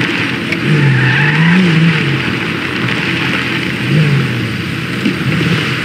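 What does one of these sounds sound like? A car engine hums as a vehicle drives along a road.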